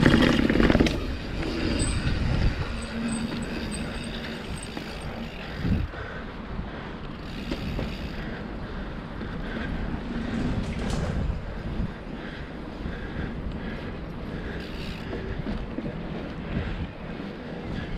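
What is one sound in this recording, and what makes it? Bicycle tyres roll and rumble over paving stones.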